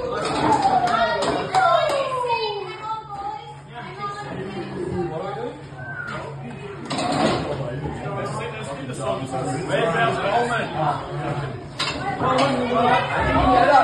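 A group of young men shout and cheer loudly in an echoing room.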